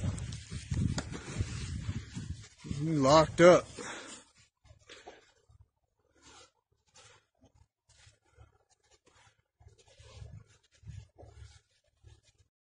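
Hooves crunch softly in snow.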